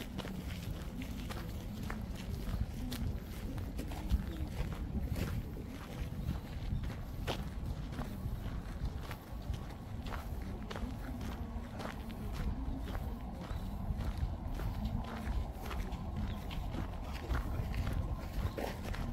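Footsteps crunch on gravel nearby.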